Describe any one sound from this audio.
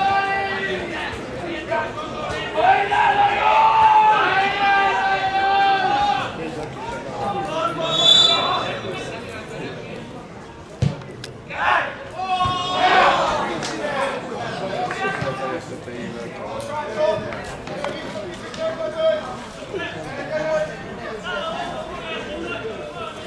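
Men shout to each other across an open field.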